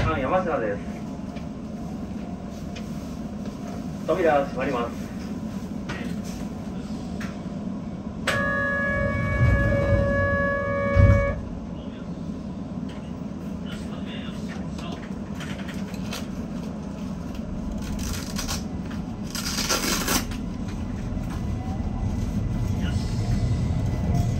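A train's motors hum steadily.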